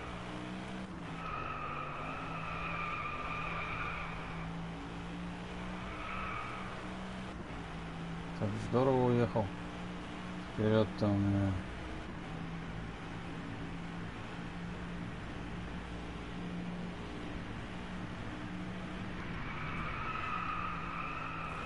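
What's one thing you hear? A V8 sports car engine roars, accelerating at full throttle through the gears.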